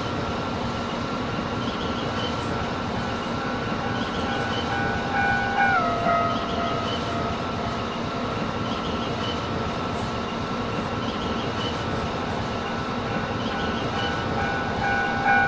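An electric train motor whines steadily, with its pitch dropping once.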